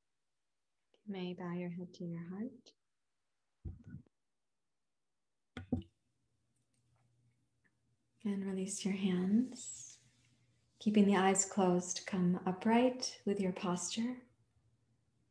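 A woman speaks softly and calmly, close by.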